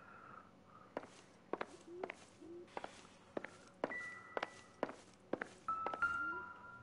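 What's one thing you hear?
Footsteps knock on a creaky wooden floor.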